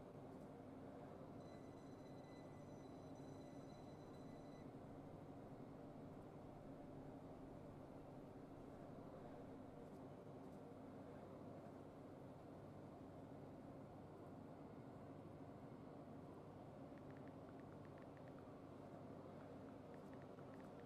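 A train engine hums steadily while standing still.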